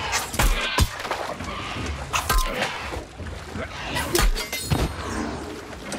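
Blades strike and clang in a fast fight.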